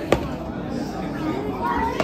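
A young child speaks.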